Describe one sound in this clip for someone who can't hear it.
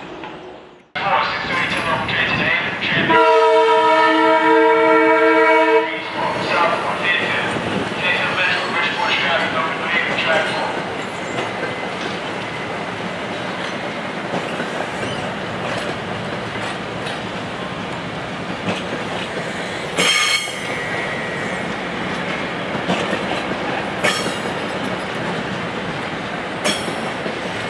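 A train rumbles and clatters past on the tracks.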